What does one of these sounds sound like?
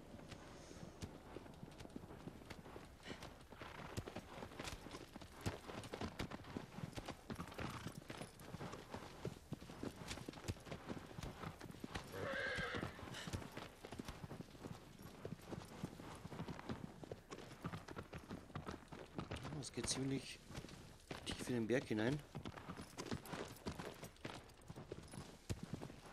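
Horse hooves gallop steadily over grass.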